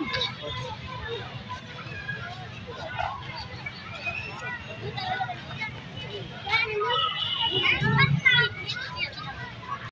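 Birds chirp and twitter nearby.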